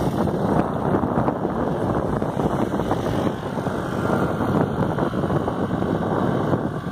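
Wind rushes loudly past a moving vehicle outdoors.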